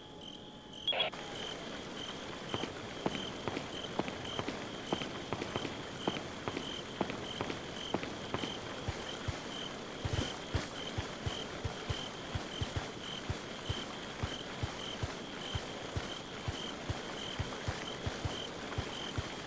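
Footsteps walk steadily on hard ground.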